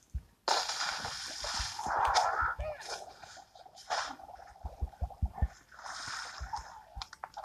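Water splashes as a small creature swims.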